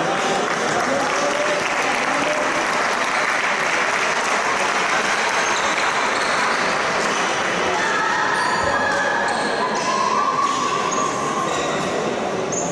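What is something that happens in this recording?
Basketball players' sneakers squeak on the court as they jog.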